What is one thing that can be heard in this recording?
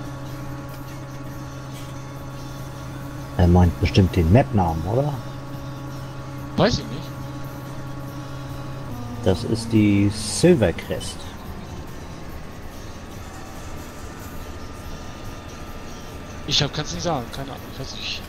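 A combine harvester engine hums steadily.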